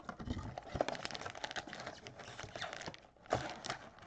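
A cardboard box flap is pulled open.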